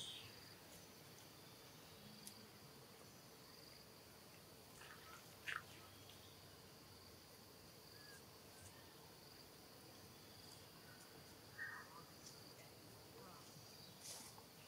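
Dry leaves rustle softly as a baby monkey shuffles about.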